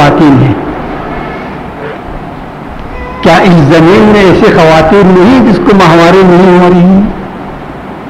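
An elderly man recites in a slow, melodic chant into a microphone.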